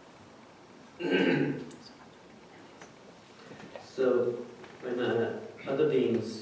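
A man speaks calmly into a microphone, with pauses between phrases.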